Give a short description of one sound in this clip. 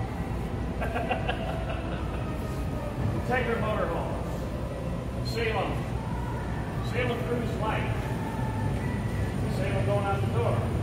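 A man speaks with animation close by, in a large echoing hall.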